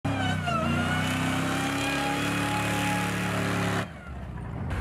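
An engine revs hard and rises in pitch as a truck speeds through sand.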